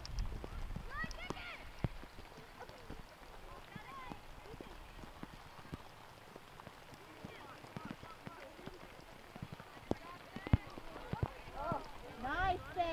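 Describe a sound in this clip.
Children shout outdoors across an open field.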